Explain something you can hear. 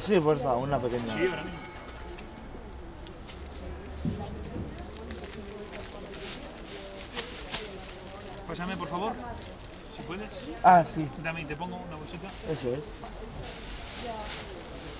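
Plastic packaging rustles as it is handled.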